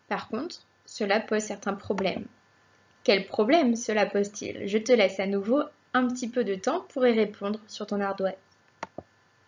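A young woman speaks calmly and clearly into a microphone, close up.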